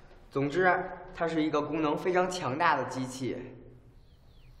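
A young man speaks calmly and clearly.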